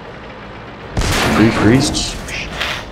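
A tank cannon fires with a loud booming blast.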